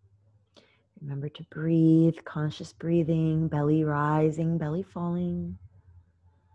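A woman speaks slowly and calmly nearby.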